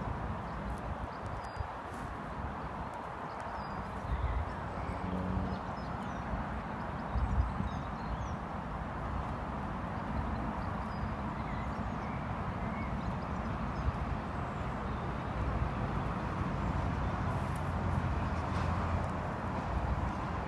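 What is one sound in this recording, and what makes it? A horse's hooves thud softly on grass at a walk.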